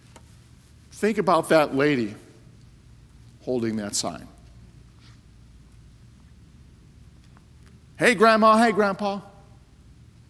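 A middle-aged man speaks forcefully through a microphone in a large echoing hall, in short bursts with long pauses.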